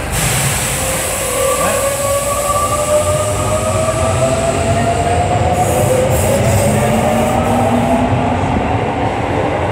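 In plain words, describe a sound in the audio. Steel wheels squeal and clatter on the rails.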